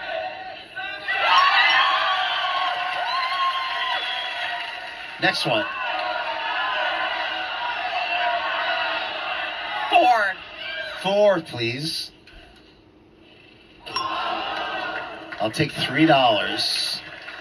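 A studio audience cheers and applauds loudly.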